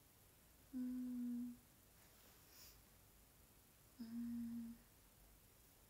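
A young woman hums softly close by, in two short drawn-out tones.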